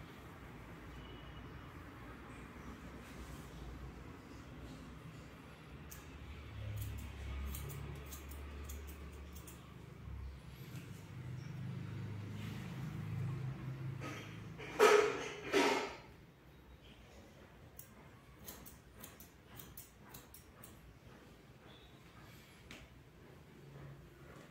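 Scissors snip through hair with short, crisp clicks.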